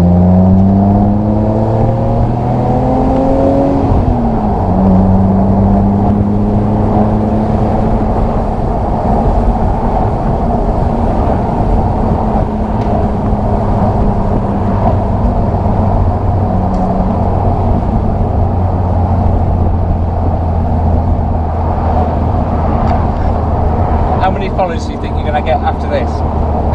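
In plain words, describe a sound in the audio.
Wind rushes past an open-top car at speed.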